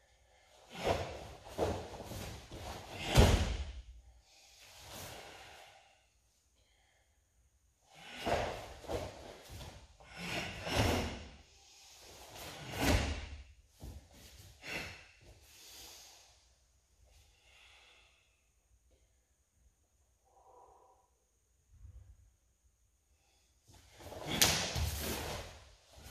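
A cloth uniform swishes and snaps sharply with fast kicks and punches in an echoing hall.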